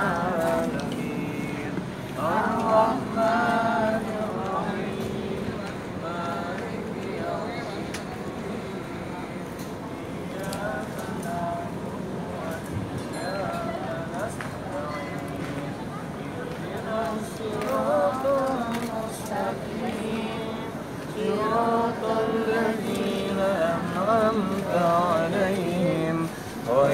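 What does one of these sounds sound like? A man speaks with animation to a crowd outdoors.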